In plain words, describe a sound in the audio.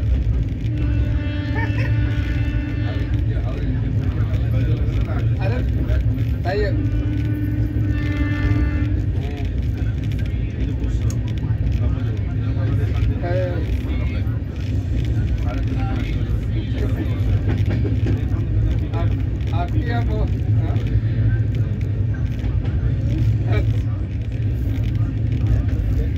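A freight train rumbles past at close range.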